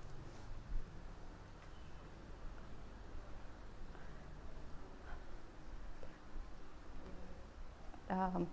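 A woman speaks softly and calmly close by.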